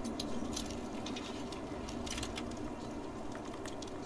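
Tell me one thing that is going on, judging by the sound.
A lock clicks softly as it is picked.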